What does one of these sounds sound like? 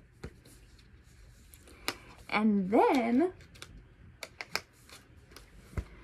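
Cardboard cards tap and rustle in hands.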